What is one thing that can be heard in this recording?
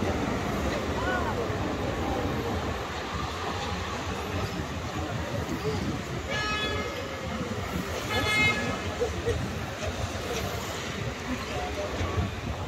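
Traffic hums steadily on a street outdoors.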